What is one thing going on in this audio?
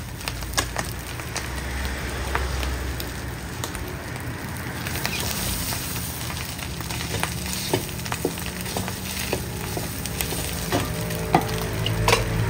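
A wooden spatula scrapes and knocks against a metal wok.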